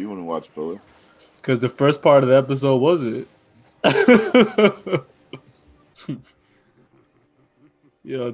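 Young men talk with animation over an online call.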